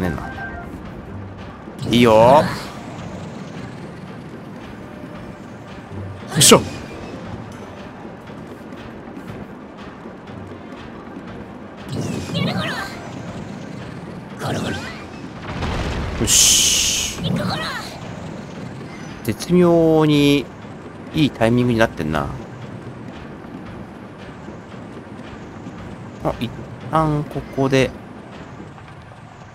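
A cart rumbles steadily along a rail.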